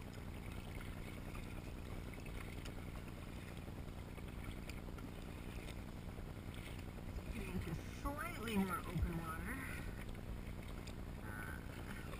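Small waves slap against a kayak's hull.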